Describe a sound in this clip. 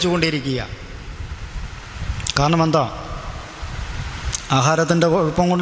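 A young man sings slowly into a microphone, close up, in short phrases.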